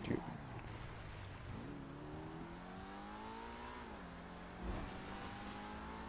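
A car's tyres skid and scrape on dirt.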